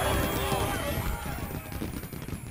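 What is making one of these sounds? A short bright chime rings out at the start.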